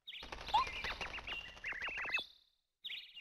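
A video game's dialogue text blips as the words print out.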